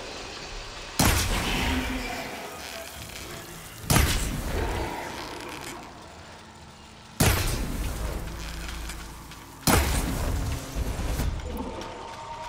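Fiery explosions burst with loud booms and fade away.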